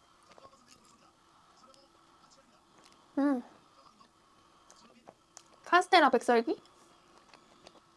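A young woman chews soft cake close to a microphone.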